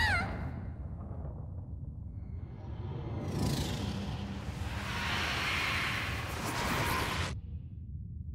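Rocks crash and tumble.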